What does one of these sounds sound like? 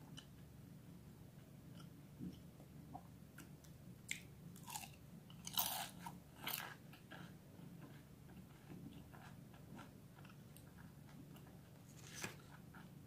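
Crispy fried pastry crunches loudly as a young woman bites and chews close to a microphone.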